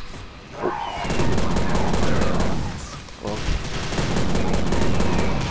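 A gun fires loud, rapid blasts.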